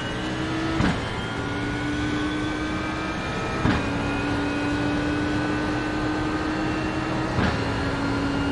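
A racing car's gearbox clunks sharply with each upshift.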